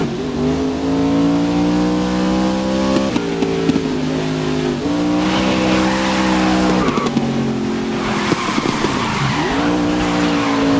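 Tyres hiss and spray over a wet track.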